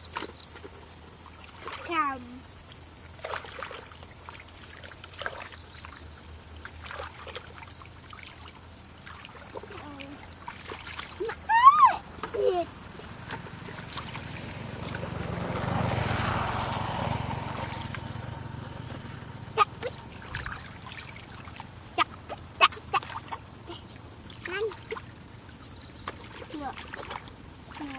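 A woman squelches through thick mud.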